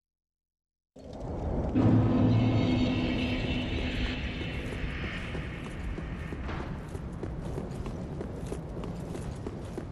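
Game footsteps crunch on stone as a character walks.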